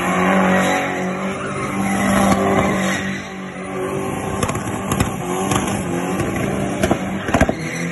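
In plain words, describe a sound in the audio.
Tyres squeal on asphalt during a burnout.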